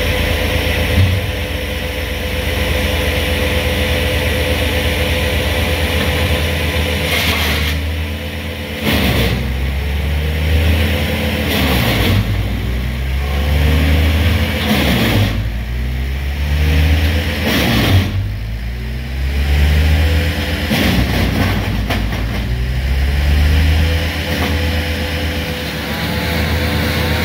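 A crane's diesel engine rumbles steadily close by and revs up and down.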